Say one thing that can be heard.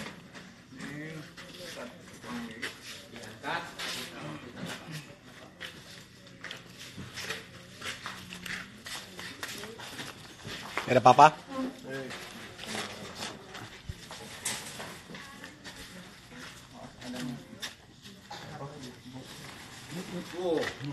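Several men talk nearby with animation.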